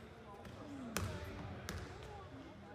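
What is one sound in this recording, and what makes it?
A handball thuds against the floor.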